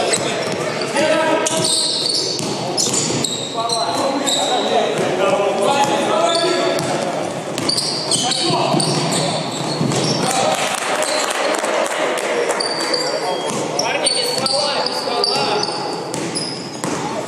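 Men shout and call out to each other in an echoing hall.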